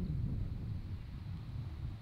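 A golf putter taps a ball softly.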